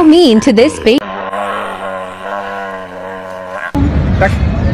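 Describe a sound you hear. A sea lion bellows loudly.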